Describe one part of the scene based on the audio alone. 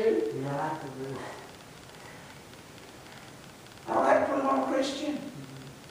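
A middle-aged man preaches through a microphone in an echoing hall, pausing between phrases.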